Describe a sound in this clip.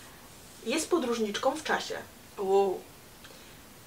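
A young woman talks casually up close.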